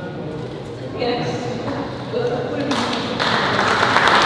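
A woman speaks into a microphone over loudspeakers.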